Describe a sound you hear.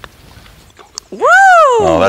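A putter softly taps a golf ball.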